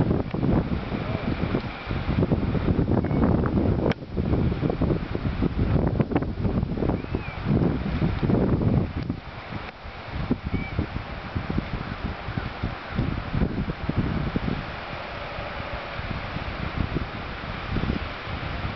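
A rabbit nibbles and tears at grass.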